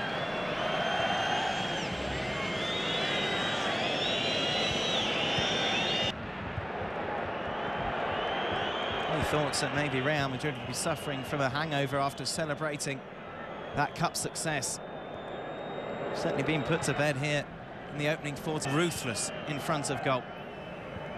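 A large stadium crowd murmurs and cheers in the open air.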